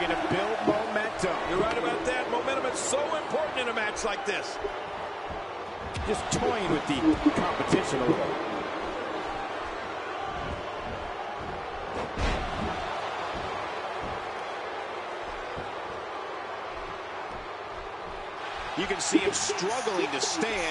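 A crowd cheers and murmurs steadily, as if in a large arena.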